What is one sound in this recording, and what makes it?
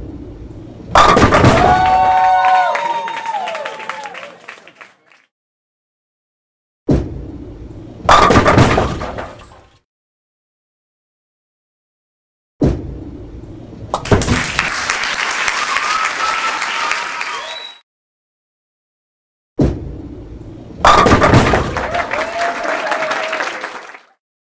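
Bowling pins crash and clatter in a game.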